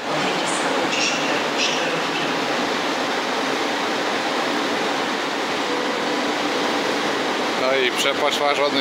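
An electric locomotive rumbles slowly into a station with a steady hum.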